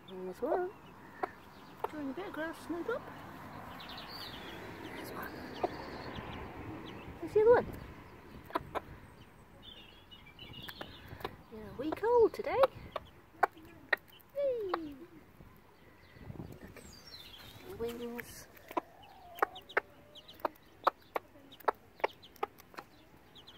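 A hen pecks at the grass with quick sharp taps.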